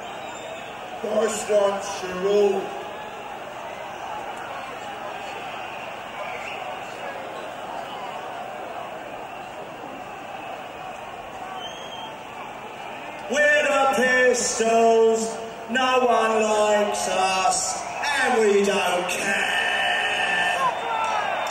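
A man sings loudly through a loudspeaker system, heard from afar.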